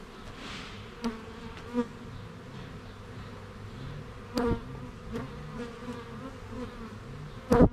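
Wooden hive parts bump and knock as a man handles them.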